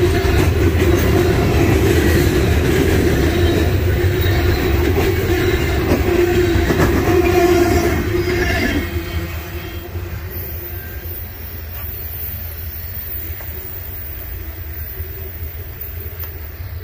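Freight cars rumble and clatter loudly along the rails close by, then fade as the train rolls away.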